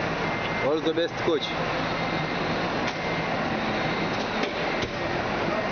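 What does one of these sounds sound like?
A metal latch clicks on a bus's luggage hatch.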